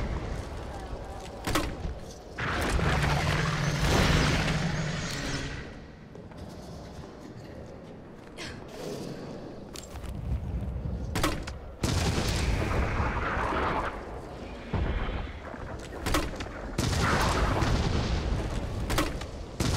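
A huge beast roars and growls.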